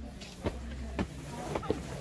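A broom sweeps across stone paving.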